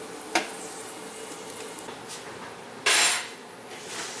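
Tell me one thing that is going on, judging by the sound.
A pan clatters onto a stovetop.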